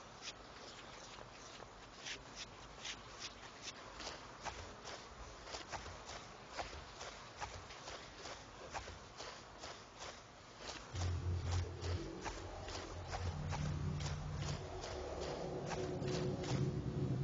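Footsteps crunch quickly on gravel and grass.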